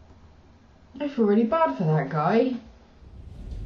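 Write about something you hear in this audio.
A woman speaks calmly and close up.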